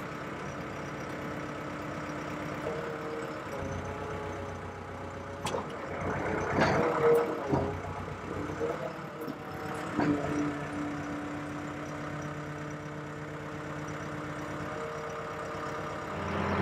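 A diesel engine idles with a steady low rumble.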